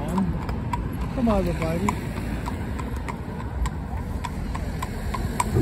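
A horse's hooves clop steadily on a paved road.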